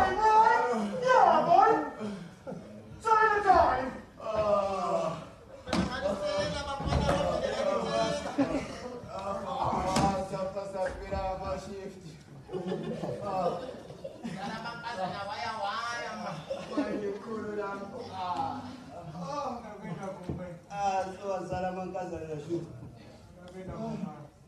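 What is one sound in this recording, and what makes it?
Several young men sing and chant loudly, close by.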